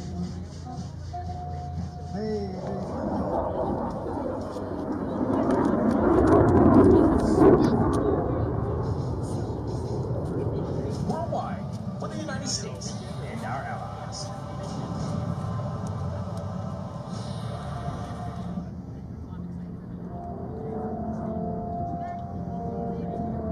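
Aircraft engines drone overhead, swelling louder and then easing off.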